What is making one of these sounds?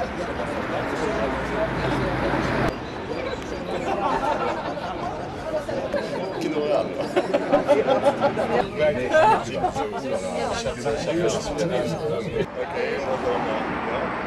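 A crowd of men and women chat and murmur outdoors.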